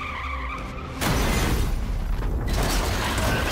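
Glass shatters and scatters.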